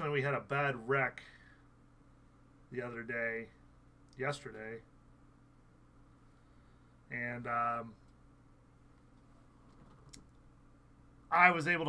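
A man speaks calmly in short phrases close to a microphone, with pauses between them.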